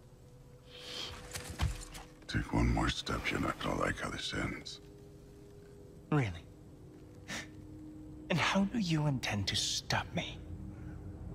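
A young man speaks calmly and mockingly, close by.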